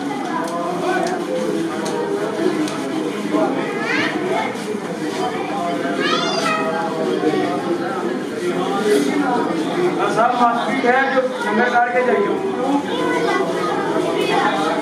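A crowd of men chant loudly together in an echoing room.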